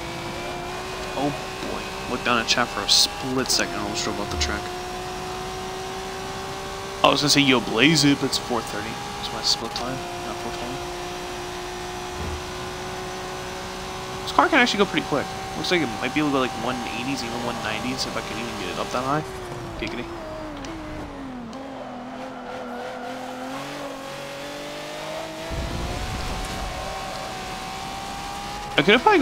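A racing car engine drones steadily at high revs, stepping down in pitch at each gear change and dropping as the car slows for a corner.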